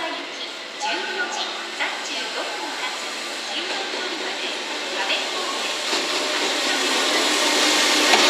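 An electric locomotive's motor hums as it pulls in.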